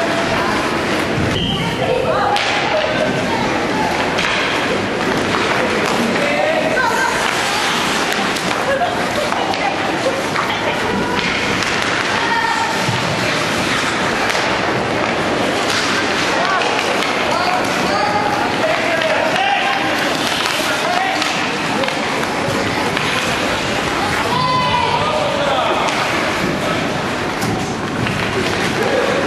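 Spectators talk and call out in a large echoing rink.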